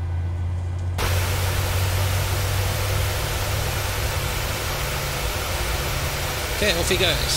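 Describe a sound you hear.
Jet engines roar loudly close by.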